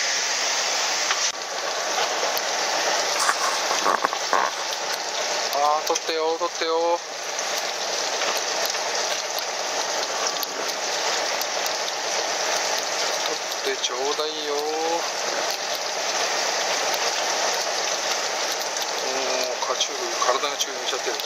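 Wind rushes steadily across an open boat deck at sea.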